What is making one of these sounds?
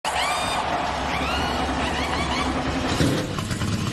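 A racing car engine roars at high revs.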